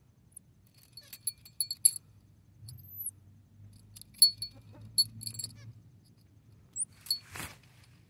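Small metal clips on a toy clink and rattle.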